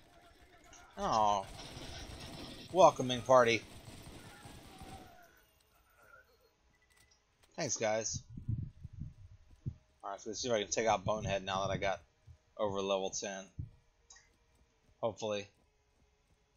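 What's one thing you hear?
A man talks into a microphone with animation, close by.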